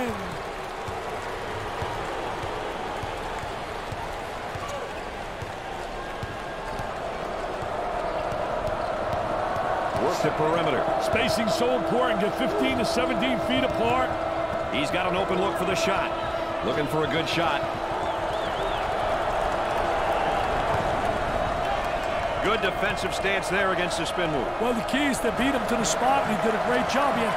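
A crowd cheers and murmurs steadily in a large echoing arena.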